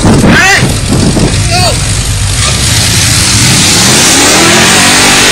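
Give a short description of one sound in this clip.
An engine roars and revs.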